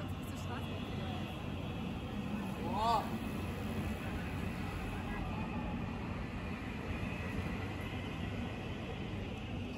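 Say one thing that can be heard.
A tram rumbles past on rails.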